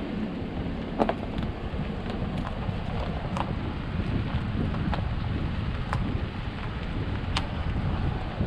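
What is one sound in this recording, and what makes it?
Small stones and twigs snap and click under the tyres.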